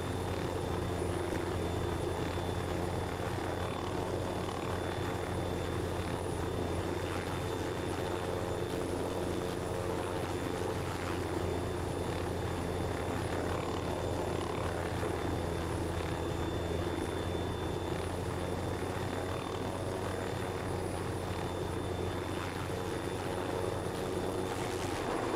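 A helicopter's rotor drones steadily and loudly.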